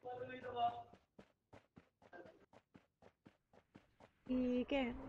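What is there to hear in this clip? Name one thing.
Footsteps patter quickly through grass.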